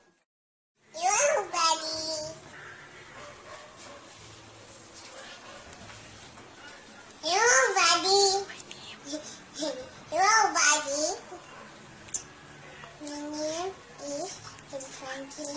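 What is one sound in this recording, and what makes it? A young girl sings loudly and brightly, close by, in short bursts.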